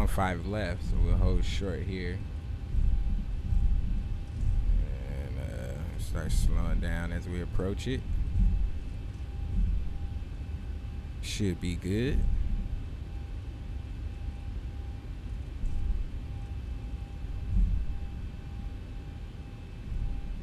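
A jet engine rumbles low and steady.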